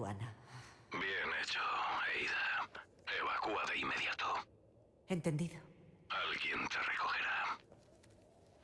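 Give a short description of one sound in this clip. A man's voice speaks calmly through a crackly radio.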